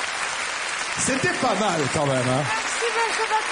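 A man speaks loudly into a microphone.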